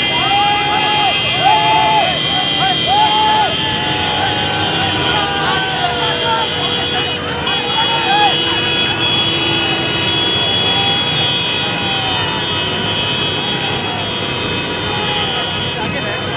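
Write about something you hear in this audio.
Motorcycle and jeep engines rumble steadily as a procession drives past.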